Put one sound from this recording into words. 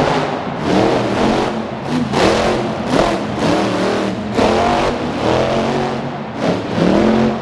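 A monster truck engine roars and revs loudly in bursts.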